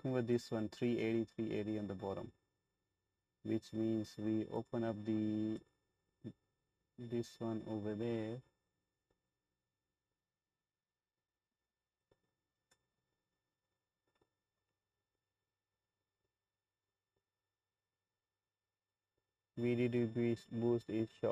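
A man talks calmly into a close microphone, in bursts with pauses.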